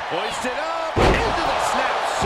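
A body slams hard onto a wrestling ring mat with a heavy thud.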